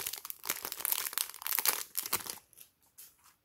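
Plastic wrap crinkles loudly as hands squeeze it.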